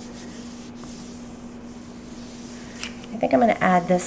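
Hands smooth and rub a sheet of paper.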